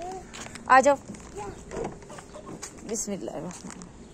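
A car door latch clicks open.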